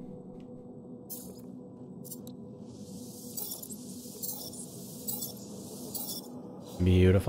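Short electronic clicks sound as menu items are picked.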